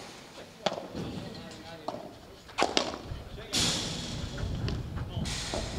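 Padel rackets strike a ball outdoors with sharp pops.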